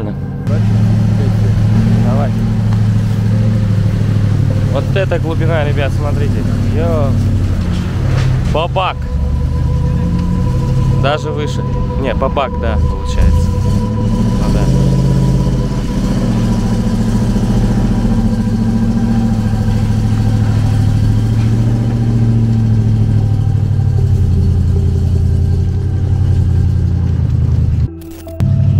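A heavy truck engine rumbles loudly nearby.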